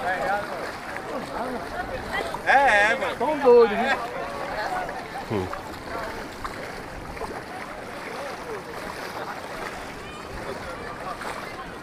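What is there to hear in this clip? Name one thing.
A crowd of people talk and call out nearby outdoors.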